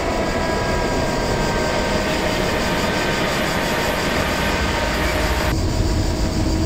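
Freight wagons roll past loudly, rumbling and squealing on the rails.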